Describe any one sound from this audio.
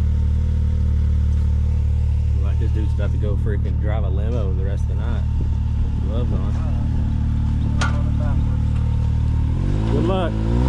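A buggy engine idles with a deep, steady rumble close by.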